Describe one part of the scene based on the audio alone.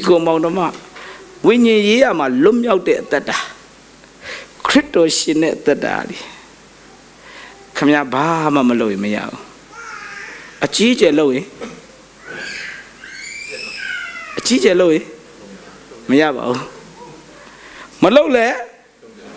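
A man speaks with animation through a microphone in a large echoing hall, pausing often.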